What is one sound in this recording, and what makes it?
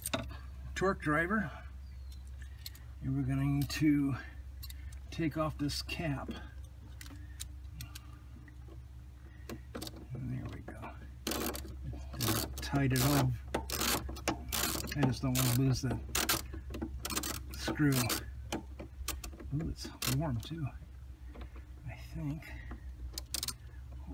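Small tools click and tap against metal parts.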